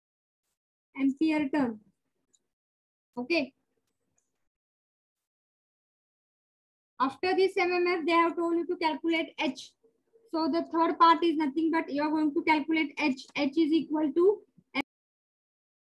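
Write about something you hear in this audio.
A young woman explains calmly, close by.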